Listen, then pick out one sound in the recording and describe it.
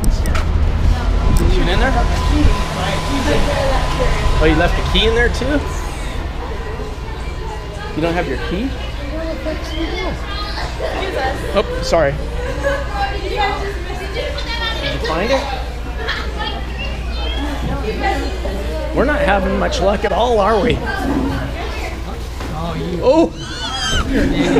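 A middle-aged man talks casually, close by.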